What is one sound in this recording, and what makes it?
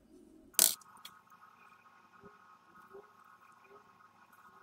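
Small metal pieces clink onto a hard surface.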